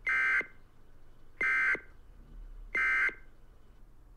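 Three loud electronic alert beeps sound at even intervals.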